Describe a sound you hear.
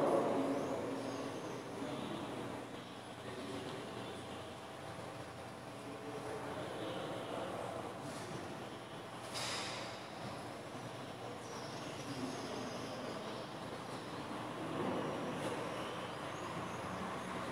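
A man speaks calmly through a loudspeaker in a large echoing hall.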